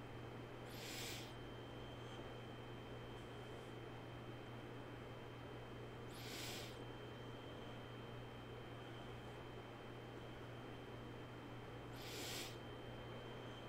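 A man breathes slowly and deeply close to a microphone.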